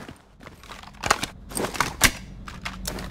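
A rifle magazine is swapped with sharp metallic clicks.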